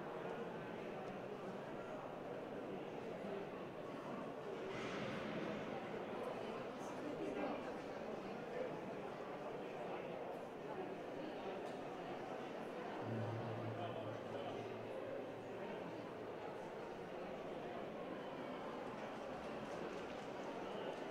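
A crowd murmurs far off outdoors.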